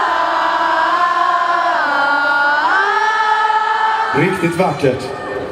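A man sings loudly through a microphone over loudspeakers.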